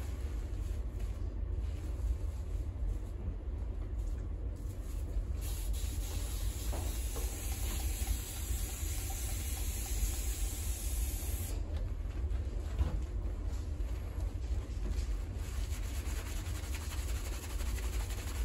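Hands squish and rub shampoo lather into wet hair.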